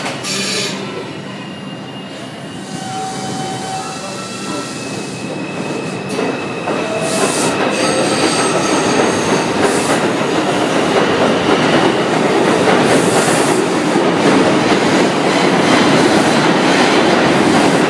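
A subway train pulls out of a station, its roar growing louder as it speeds up.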